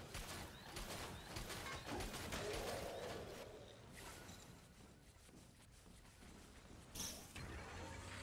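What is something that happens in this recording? An energy weapon fires a crackling, buzzing beam.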